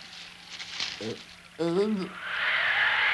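A cartoon frog croaks.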